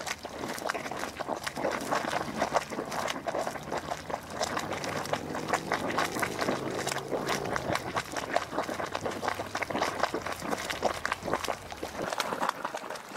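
Hot mud bubbles and plops.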